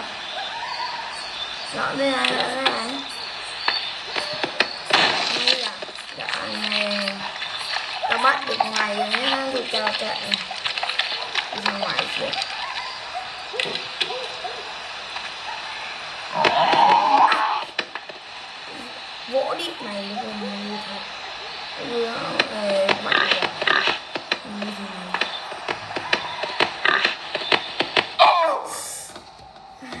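Video game sound effects play from a tablet's small speaker.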